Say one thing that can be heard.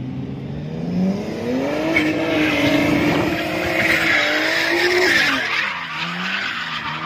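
Tyres squeal on asphalt during a drift.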